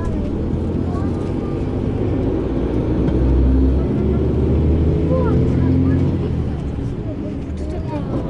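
A vehicle engine hums steadily from inside as it drives along.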